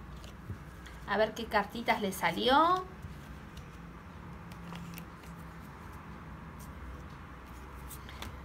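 Playing cards riffle and flick softly.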